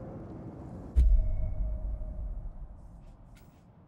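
A deep booming whoosh sounds as a game menu opens.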